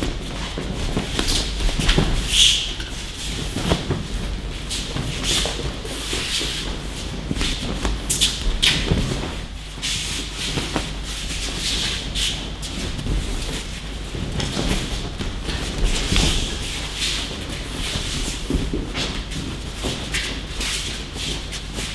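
Feet shuffle and slap on mats.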